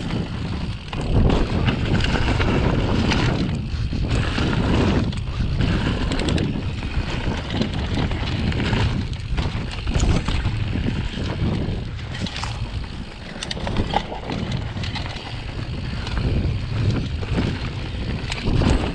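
A bicycle frame rattles and clatters over bumps.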